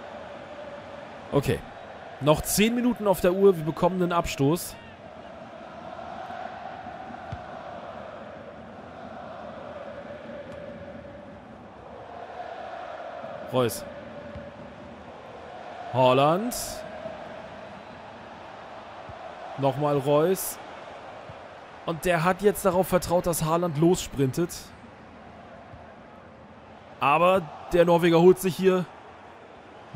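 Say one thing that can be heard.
A large stadium crowd murmurs and hums steadily.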